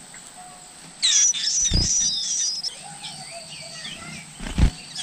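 Nestling birds chirp and cheep loudly for food.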